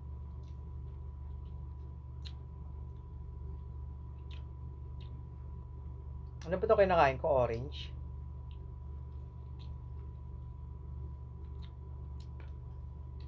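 Crisp food crunches as a young man bites into it.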